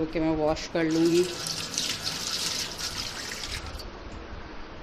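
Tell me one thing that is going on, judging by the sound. Water splashes from a tap into a metal sink.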